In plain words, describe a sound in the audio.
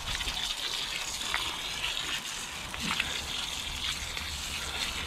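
A garden hose sprays water onto soil with a steady hiss.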